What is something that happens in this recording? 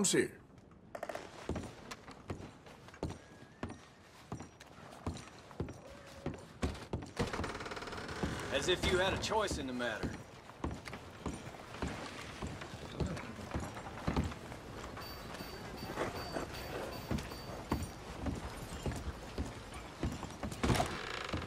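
Boots thud on wooden floorboards.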